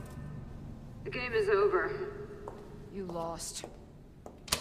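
A woman answers in a tense, taunting voice.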